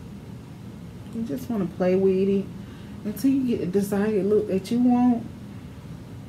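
A young woman speaks close to a microphone, briefly and with animation.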